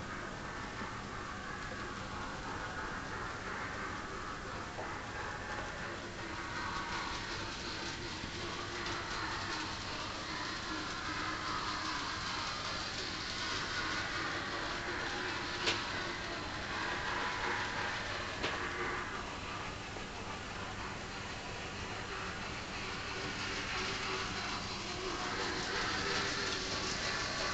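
Model trains rumble and whir softly along their tracks.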